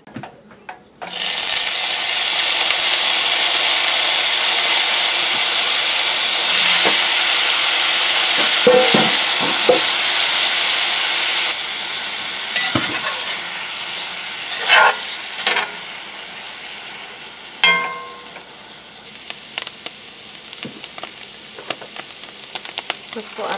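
Food sizzles loudly in a hot pan, slowly quieting.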